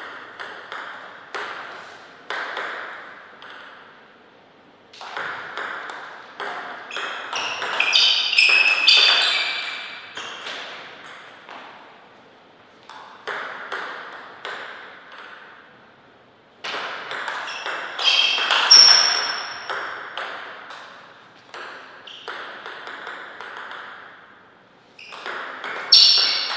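A table tennis ball clicks back and forth off paddles and the table in quick rallies.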